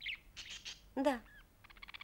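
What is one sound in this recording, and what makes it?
A young girl speaks calmly.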